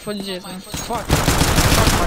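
Gunshots crack in quick succession.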